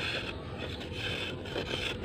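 A thin stick rustles against cloth.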